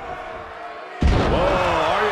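A wrestler's body slams hard onto the ring mat.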